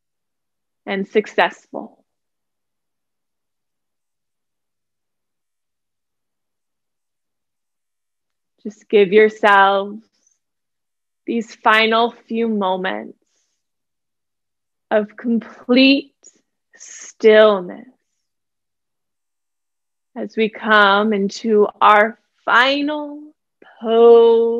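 A young woman speaks calmly and softly into a close microphone, pausing between phrases.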